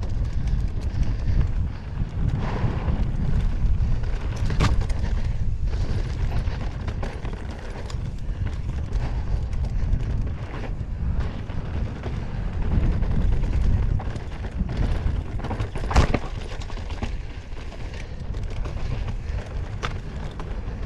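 Bike tyres crunch and skid over a dirt trail.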